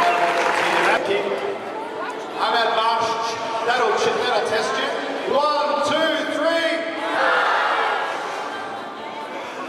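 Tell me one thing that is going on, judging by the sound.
A large group of children and adults sings together.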